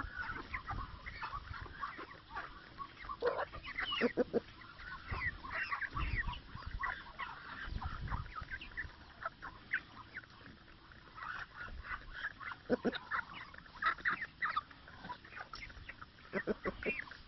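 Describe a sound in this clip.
Hens cluck and chirp softly close by.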